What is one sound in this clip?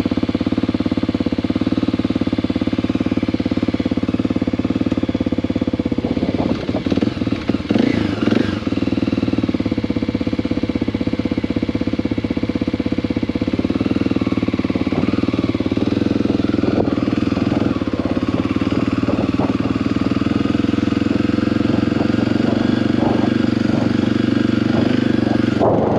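A motorcycle engine idles steadily, then revs and pulls away.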